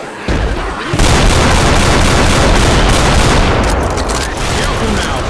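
A shotgun fires loudly.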